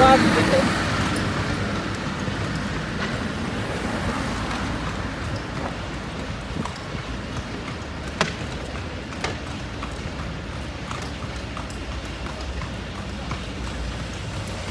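A horse's hooves clop steadily on pavement.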